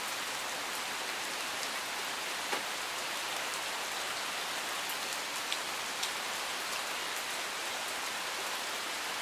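Water rushes steadily over rocks.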